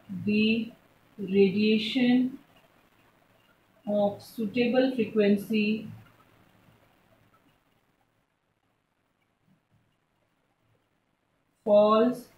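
A young woman speaks calmly and clearly nearby, explaining.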